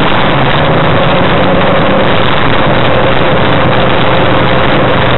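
Wind rushes loudly past an open cockpit.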